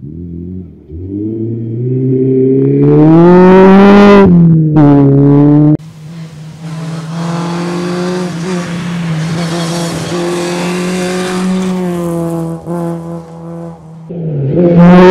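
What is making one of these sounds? A rally car engine roars loudly as the car speeds past.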